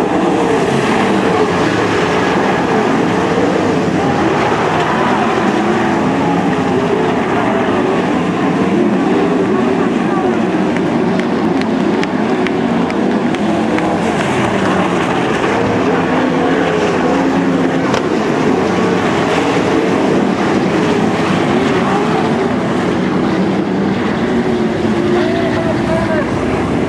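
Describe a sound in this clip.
Racing car engines roar and whine around a dirt track.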